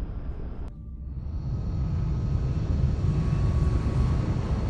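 A heavy engine rumbles and grows louder.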